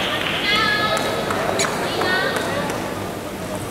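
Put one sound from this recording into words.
A table tennis ball bounces a few times with sharp ticks.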